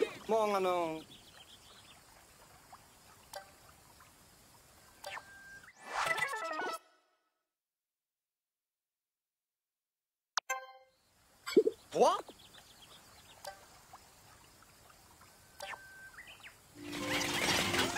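Soft electronic blips and chimes sound now and then.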